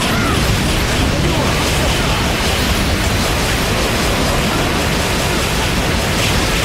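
A heavy gun fires in rapid bursts with loud blasts.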